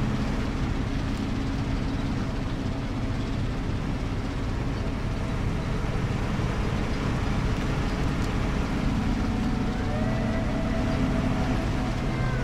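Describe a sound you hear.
Tyres crunch through snow.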